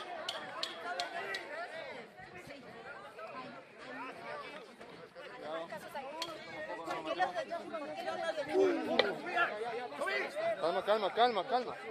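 A crowd of men and women shout and talk excitedly close by, outdoors.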